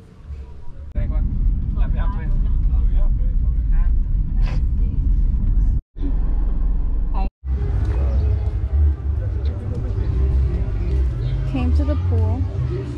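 A car engine rumbles low while driving.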